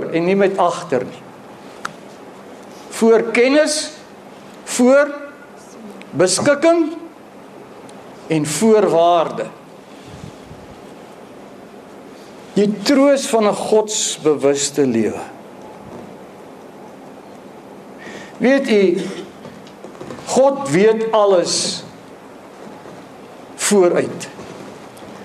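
A middle-aged man speaks with animation in short bursts with pauses, heard in a room with a slight echo.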